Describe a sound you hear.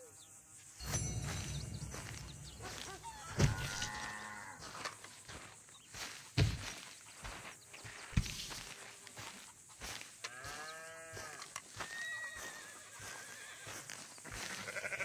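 Footsteps crunch steadily on dry, dusty ground.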